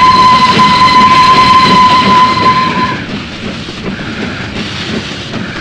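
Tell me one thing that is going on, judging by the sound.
A steam locomotive rumbles and chuffs as it slowly approaches.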